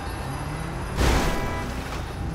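A car crashes with a loud bang.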